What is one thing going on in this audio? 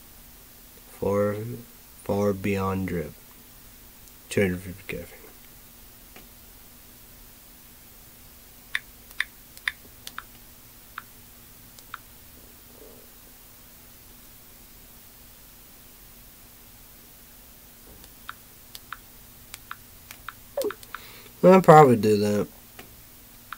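A young man speaks close to a microphone in short bursts.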